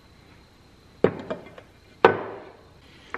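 Metal engine parts clink and knock against each other.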